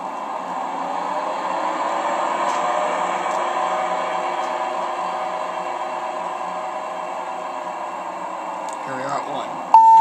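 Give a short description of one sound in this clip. A lift hums steadily as it travels.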